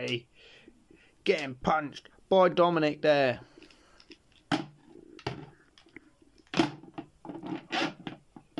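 Plastic toy figures knock and clatter together.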